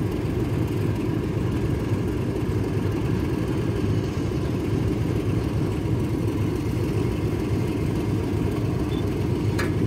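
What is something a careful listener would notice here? A train approaches slowly along the track from a distance.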